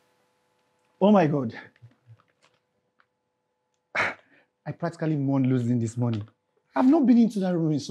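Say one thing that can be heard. An adult man talks nearby in a calm voice.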